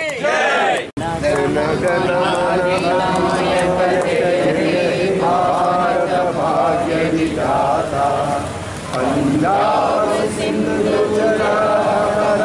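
A group of men and women sing together outdoors.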